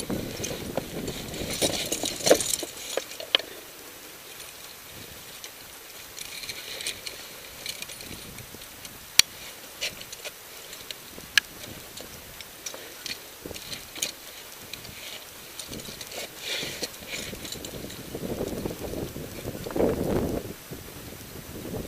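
Wind gusts buffet a microphone outdoors.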